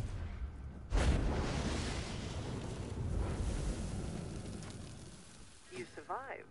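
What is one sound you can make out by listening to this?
Flames burst up and roar loudly, then die down.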